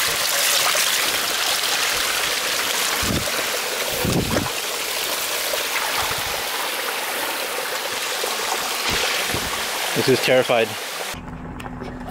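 Water splashes and rushes over rocks close by.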